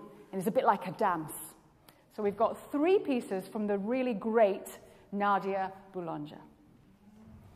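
A woman speaks with animation into a microphone.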